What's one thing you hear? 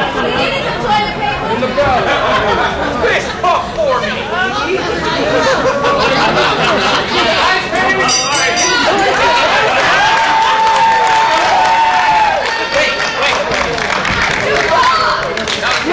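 A crowd of spectators cheers and shouts throughout, echoing in a large hall.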